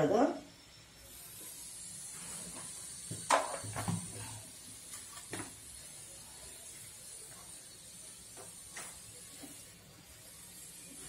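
A gas burner hisses softly and steadily.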